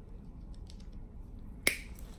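A scalpel scrapes softly against hard skin.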